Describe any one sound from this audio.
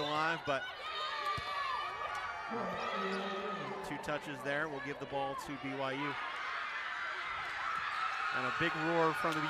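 A crowd cheers and applauds in a large echoing arena.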